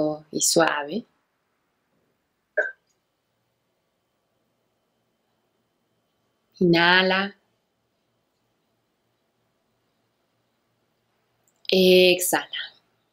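A young woman speaks calmly and softly, close to a microphone, with long pauses.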